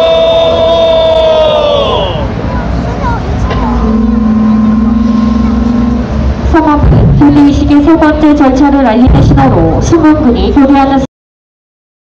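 A crowd murmurs outdoors on a busy street.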